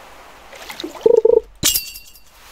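A fishing float plops as a fish bites.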